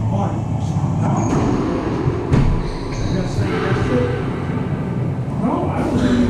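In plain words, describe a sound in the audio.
Players' shoes squeak on the court floor.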